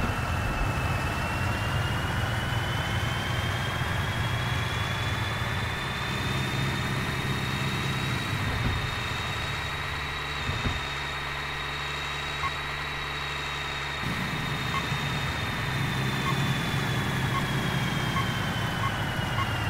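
A heavy truck engine rumbles steadily as it drives along a highway.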